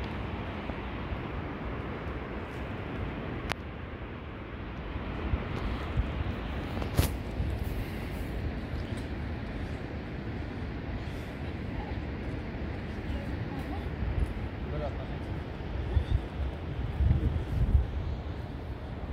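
Wind blows steadily across an open hillside.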